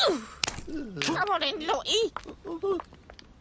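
A cartoon man grunts and mumbles in a squeaky voice.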